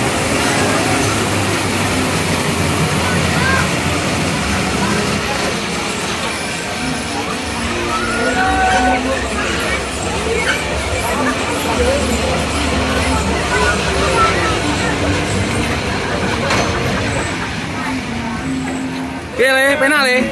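A small train ride rumbles and clatters along its track.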